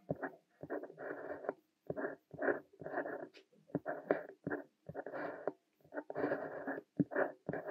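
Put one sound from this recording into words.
A fountain pen scratches across paper in short strokes, close up.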